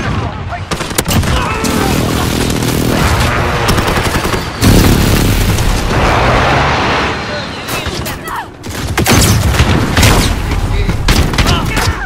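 Rapid gunfire cracks in short bursts.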